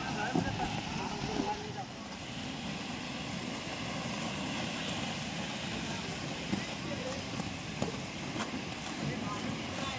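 Inline skate wheels roll and rumble on concrete.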